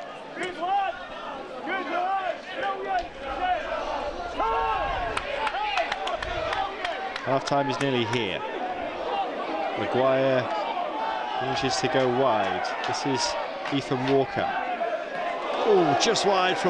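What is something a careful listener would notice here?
A crowd of spectators chants and cheers outdoors.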